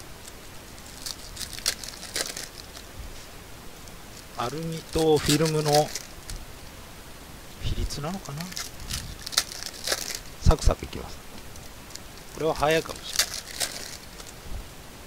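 Plastic wrappers crinkle and rustle as packs are handled.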